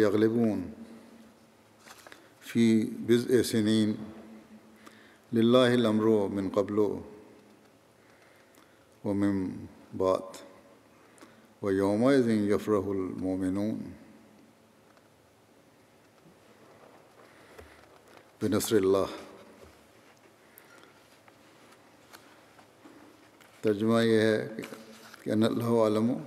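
An elderly man speaks slowly and calmly through a microphone in a large echoing hall, with long pauses.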